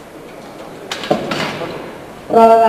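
A loaded barbell clanks down into a metal rack.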